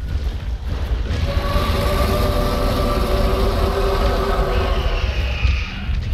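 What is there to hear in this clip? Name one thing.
A bright magical shimmer swells and sparkles.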